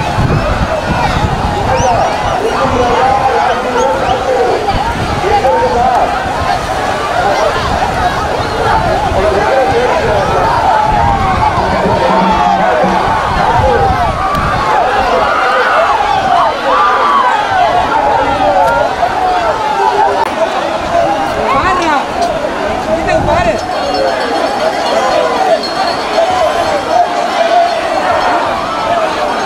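A large crowd of men and women shouts and chants outdoors.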